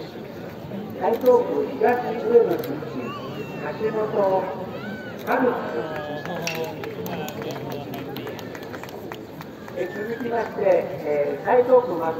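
A man calls out loudly in a drawn-out chant.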